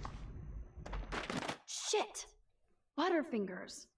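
A folder drops and slaps onto a floor.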